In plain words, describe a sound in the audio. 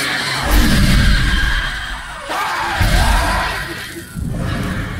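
An eerie magical burst whooshes and crackles.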